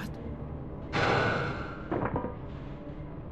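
A body thuds heavily onto the ground.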